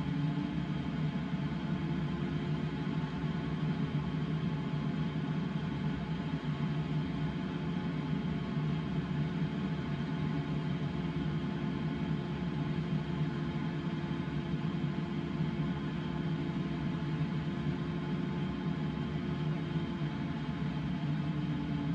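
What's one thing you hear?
Wind rushes steadily past a glider's canopy in flight.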